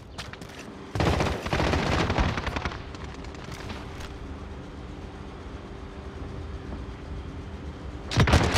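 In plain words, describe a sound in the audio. A helicopter's rotor thumps and roars nearby.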